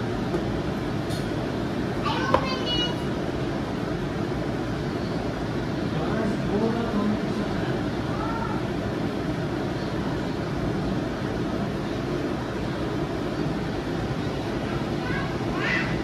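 Hands squish and toss soft food in a bowl.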